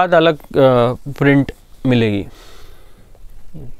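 Clothes rustle as a man handles them.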